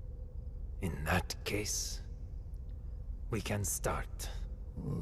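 An older man speaks in a low, grave voice.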